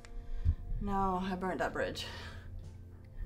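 A young woman answers calmly, close by.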